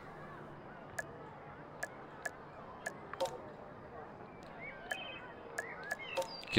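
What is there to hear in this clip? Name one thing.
Short soft interface clicks sound now and then as menu options change.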